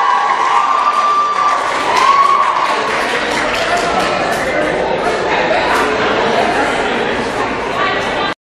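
A small band plays music in a large echoing hall.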